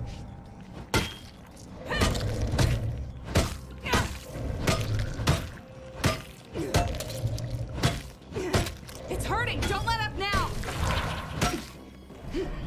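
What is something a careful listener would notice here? A melee weapon strikes a monster with heavy thuds.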